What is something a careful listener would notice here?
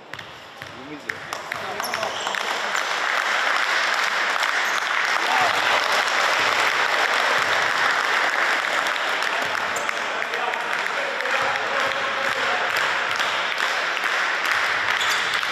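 A crowd cheers and chants loudly in an echoing hall.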